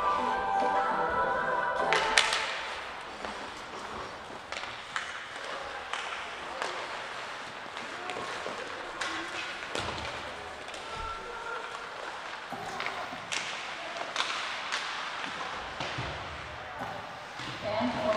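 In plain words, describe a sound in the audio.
Skates scrape and carve across the ice in a large echoing rink.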